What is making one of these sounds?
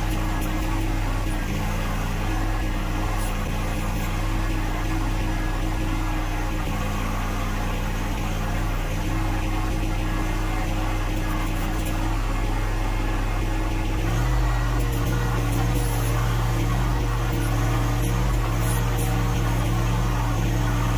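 A small tractor's diesel engine runs steadily close by.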